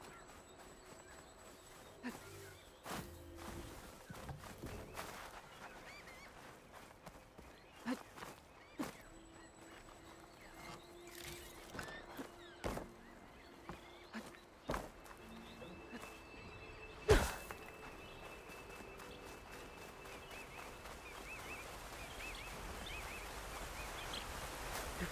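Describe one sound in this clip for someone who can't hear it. Footsteps crunch quickly over sand.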